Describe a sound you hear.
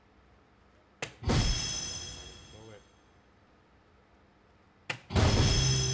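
A dart thuds into an electronic dartboard.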